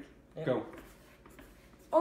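Pencils scratch on paper.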